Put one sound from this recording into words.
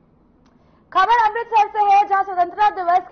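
A young woman speaks clearly into a microphone, reading out the news.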